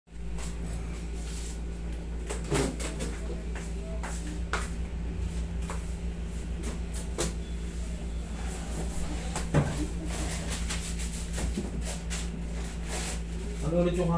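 A middle-aged woman speaks briefly nearby.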